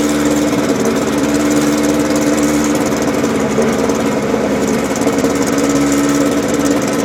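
A racing car engine roars loudly close by.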